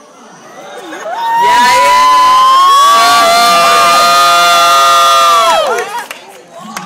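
A man sings a long, loud held note through a loudspeaker in a large hall.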